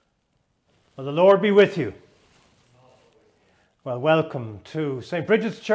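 A middle-aged man speaks calmly and clearly into a microphone.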